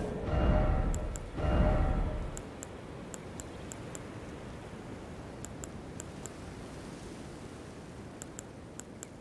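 Soft menu ticks click.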